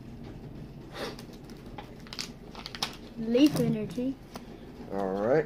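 Playing cards rustle and snap in hands.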